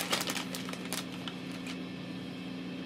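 A plastic bag crinkles in a man's hands.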